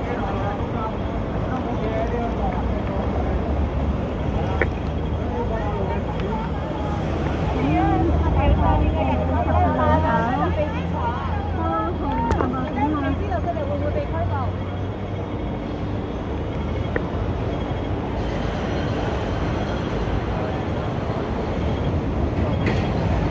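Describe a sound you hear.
A crowd murmurs and chatters outdoors on a busy street.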